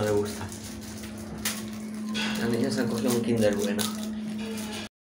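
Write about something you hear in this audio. Candy wrappers crinkle as a girl opens them.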